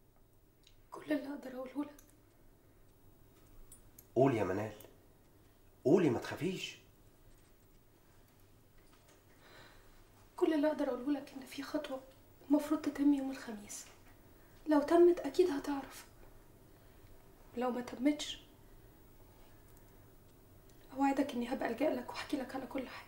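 A young woman speaks in an upset, tearful voice close by.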